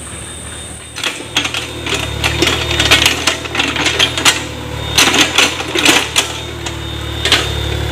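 A small excavator engine rumbles steadily.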